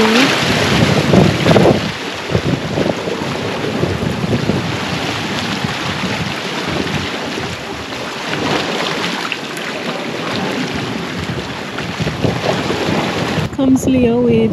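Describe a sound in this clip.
Waves splash against rocks.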